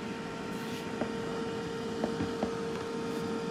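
Touch buttons on an air fryer beep.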